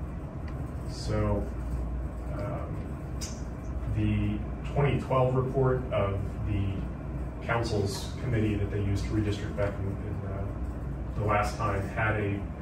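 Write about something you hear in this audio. An adult speaks calmly into a microphone.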